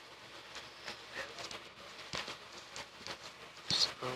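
Dirt blocks crunch as they are dug in a video game.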